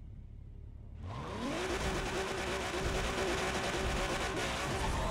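Tyres screech as a car spins its wheels.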